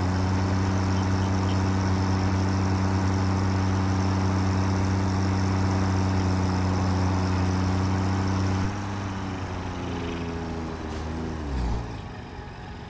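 A vehicle engine hums steadily, then winds down and stops.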